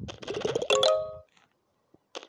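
A bright chime plays as a game level finishes.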